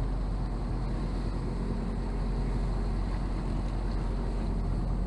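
Waves wash against the boat's hull.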